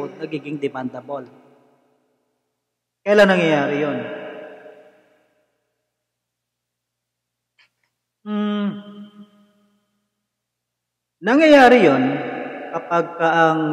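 A young man speaks close into a microphone, with pauses.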